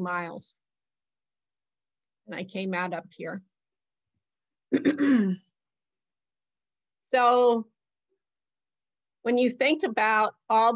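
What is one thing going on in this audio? An elderly woman speaks calmly, with pauses, heard through an online call.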